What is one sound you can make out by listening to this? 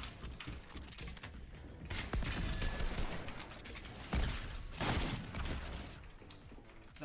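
Wooden walls are built with rapid clattering game sound effects.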